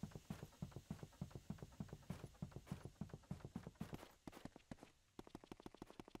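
Quick, light footsteps tap rhythmically on a ladder's rungs.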